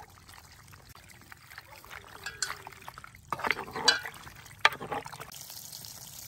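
A wooden spoon stirs and scrapes pasta in a metal pan.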